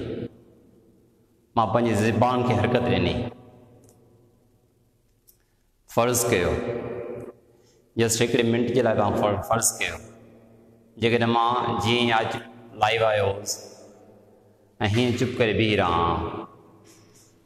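A middle-aged man speaks calmly in short phrases, close by.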